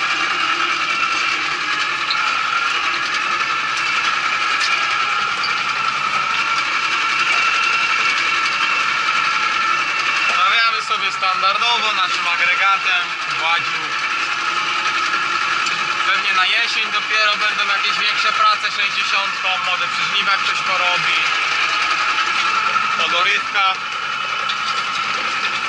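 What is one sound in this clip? A tractor engine drones steadily inside the cab.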